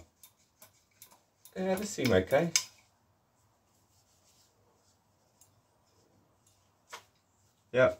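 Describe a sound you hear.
Metal brake parts click and clack in a man's hands.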